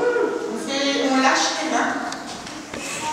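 Young children clap their hands.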